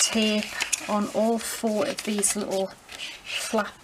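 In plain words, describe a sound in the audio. Stiff paper rustles as it is folded and pressed flat.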